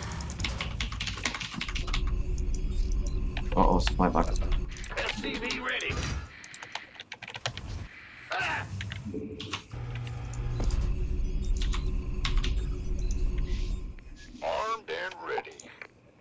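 Mechanical game units whir and clank.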